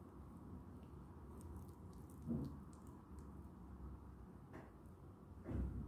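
Fingers rub grains in a small glass bowl.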